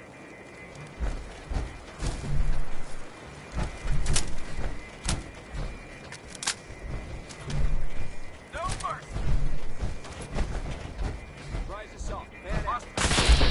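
Heavy metal footsteps clank at a steady pace.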